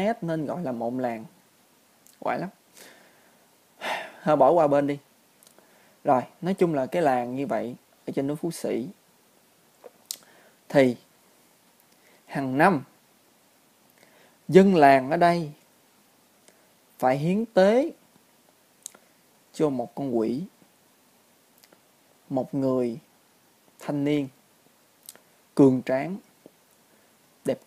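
A young man talks calmly into a close microphone, in short phrases with pauses.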